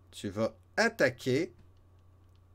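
A man speaks close to a microphone, with animation.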